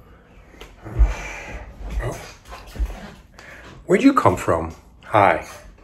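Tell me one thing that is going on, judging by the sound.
A middle-aged man talks calmly over a microphone.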